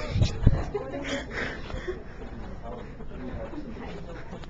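A young man laughs close up.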